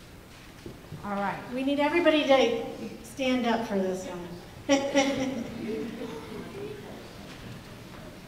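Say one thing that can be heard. A woman speaks clearly into a microphone in an echoing hall.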